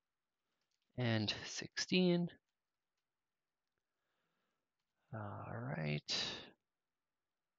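A young man speaks calmly and closely into a microphone, in short bursts.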